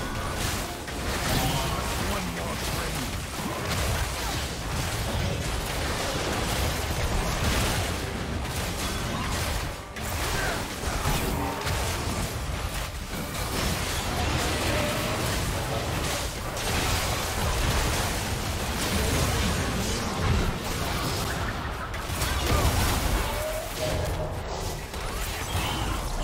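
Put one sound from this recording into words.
Magic blasts crackle and burst in a fight.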